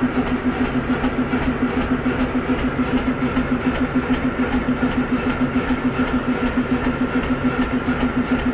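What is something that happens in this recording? A diesel shunting locomotive's engine throbs as it moves along the tracks.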